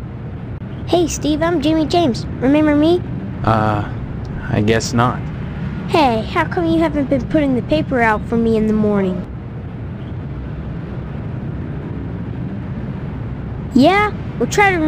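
A young boy talks with animation.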